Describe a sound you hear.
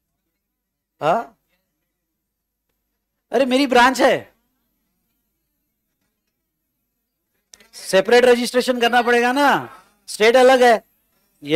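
A middle-aged man speaks calmly and clearly into a close microphone, in short bursts with pauses.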